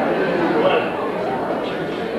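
A man speaks into a microphone over a loudspeaker.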